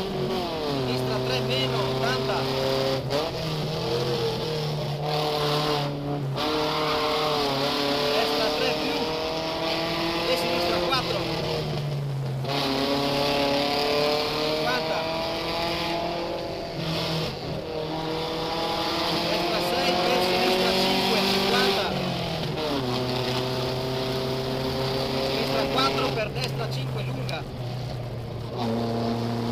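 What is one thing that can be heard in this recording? A car engine revs hard, rising and falling through the gear changes.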